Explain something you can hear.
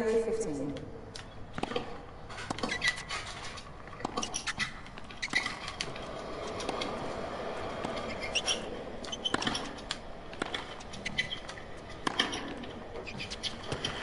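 Tennis balls are struck back and forth with sharp pops.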